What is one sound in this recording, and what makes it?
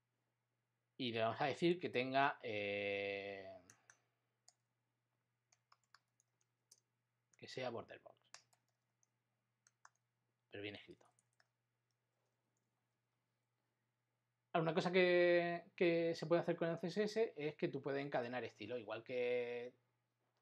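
A middle-aged man speaks calmly into a close microphone, in short bursts with pauses.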